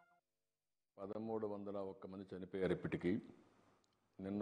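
An older man speaks calmly and steadily into a microphone.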